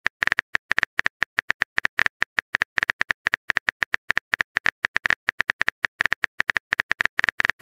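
Keyboard taps click quickly and unevenly.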